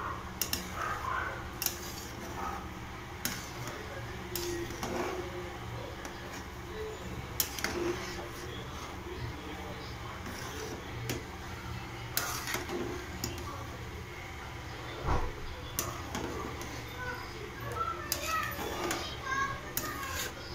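Thick curds squelch as a spoon stirs them in a pot.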